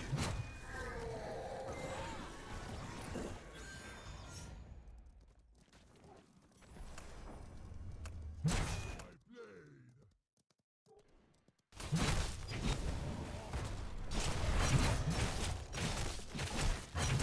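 Video game battle sounds clash and crackle in loud bursts.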